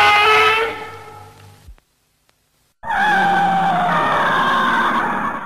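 A monster roars with a loud, shrill, screeching cry.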